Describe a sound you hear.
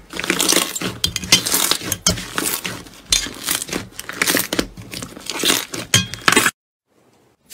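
Hands squish and press crunchy slime, which crackles and pops.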